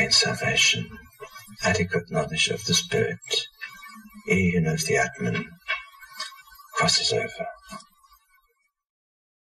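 An older man speaks calmly and slowly, close to a microphone.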